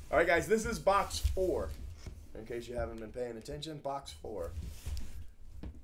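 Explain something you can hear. Hands slide and shift a cardboard box.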